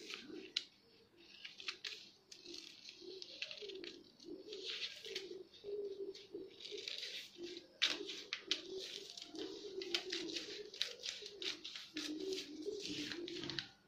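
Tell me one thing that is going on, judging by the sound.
Scissors snip through newspaper with crisp, repeated cuts.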